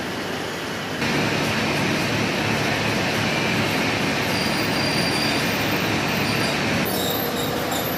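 A rotating machine drum rumbles and whirs steadily.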